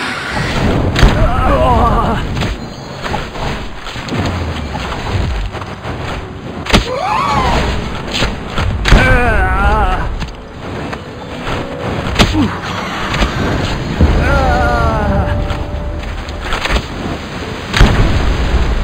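A gun fires in loud, sharp bangs.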